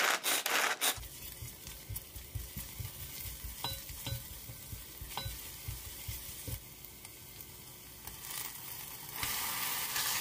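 Garlic sizzles softly in hot oil.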